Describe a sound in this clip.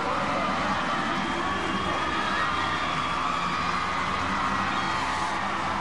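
Young women scream and shout in celebration.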